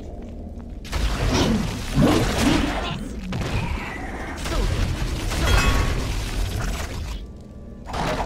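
A magic spell bursts with a loud whoosh during a fight.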